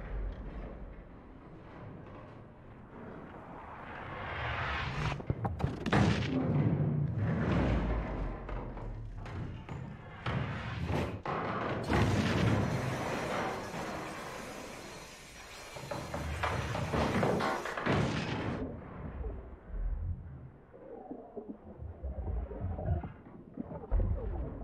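A metal lift cage creaks and rattles as it moves.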